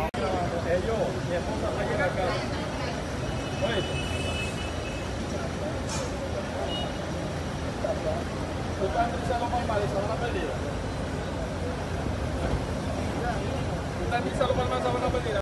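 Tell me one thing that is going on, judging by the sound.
A crowd of men talk and call out at once, close by outdoors.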